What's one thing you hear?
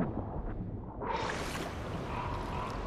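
A swimmer breaks the surface with a splash.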